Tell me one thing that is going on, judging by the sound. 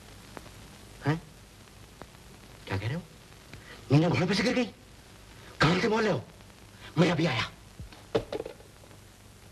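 A man speaks loudly and urgently into a telephone, close by.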